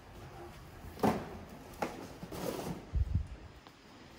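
A box scrapes and thumps on the ground nearby.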